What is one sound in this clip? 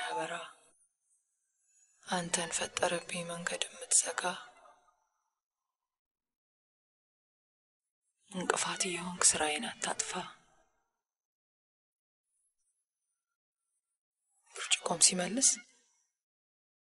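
A woman speaks softly and close, in short phrases with pauses.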